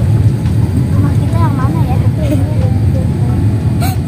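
A young girl giggles close by.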